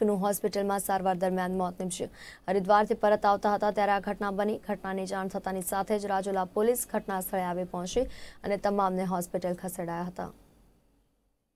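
A young woman reads out the news clearly through a microphone.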